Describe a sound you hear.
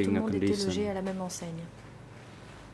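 A middle-aged woman speaks tearfully into a microphone.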